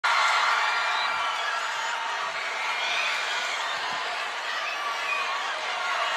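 A huge outdoor crowd cheers and shouts loudly.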